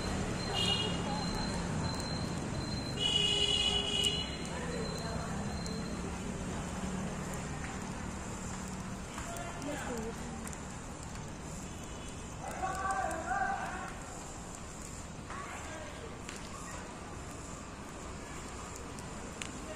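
Burning grass crackles and pops in a fire outdoors.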